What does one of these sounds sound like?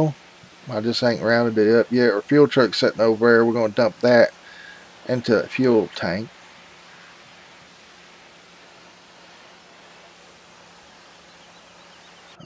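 A pressure washer sprays water in a steady hiss.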